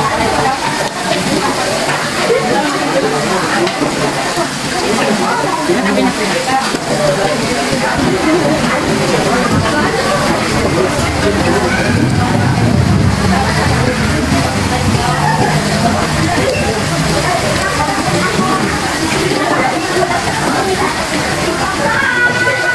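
Meat sizzles on a hot grill pan.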